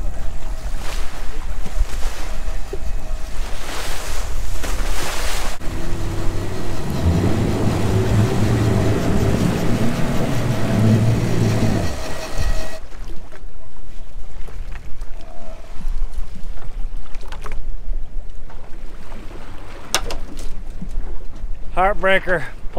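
Waves slosh and splash against a boat.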